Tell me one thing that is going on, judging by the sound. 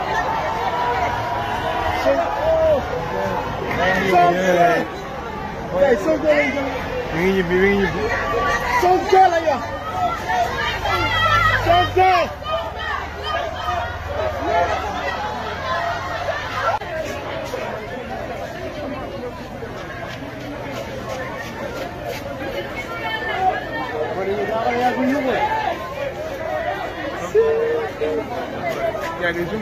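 A crowd of men and women talk and call out nearby, outdoors.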